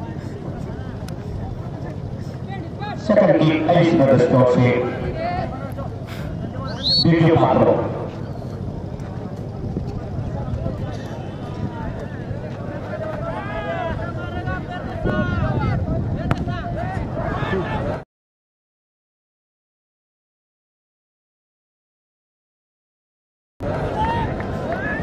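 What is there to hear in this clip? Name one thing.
A large crowd of men chatters and shouts outdoors.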